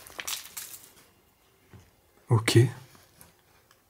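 A plastic bag crinkles.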